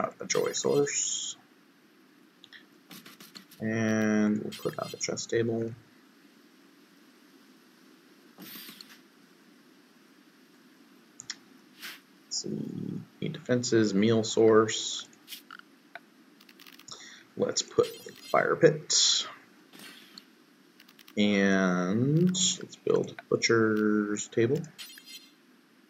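A man talks calmly and casually into a close microphone, in bursts with pauses.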